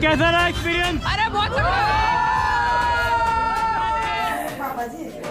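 A crowd of young people cheers and sings loudly outdoors.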